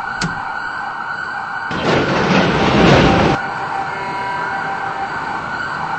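A train's electric motor whines and winds down as the train brakes to a stop.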